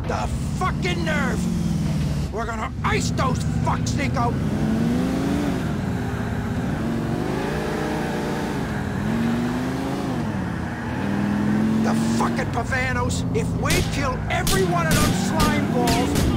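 A car engine revs and roars as the car speeds along.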